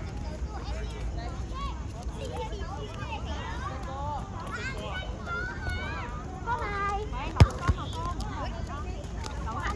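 A crowd of children and adults shout and cheer outdoors.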